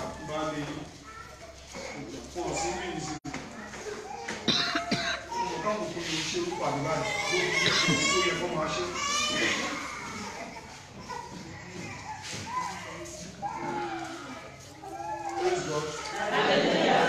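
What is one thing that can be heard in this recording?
A crowd of women sings together in an echoing room.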